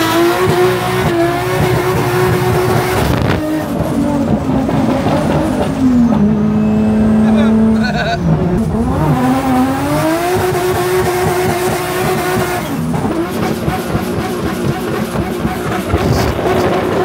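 Tyres roll on the road.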